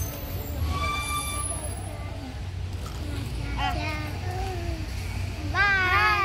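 Children's voices chatter and call out nearby.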